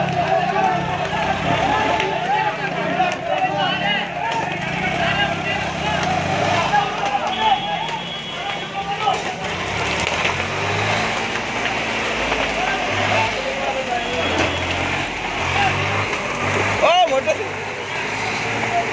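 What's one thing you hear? A crowd of men shouts excitedly outdoors.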